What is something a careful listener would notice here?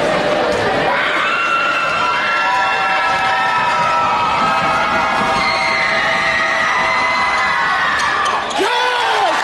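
A brass band plays loudly.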